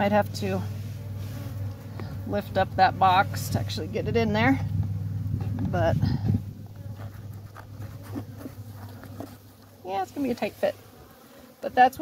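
Bees buzz steadily around a hive up close.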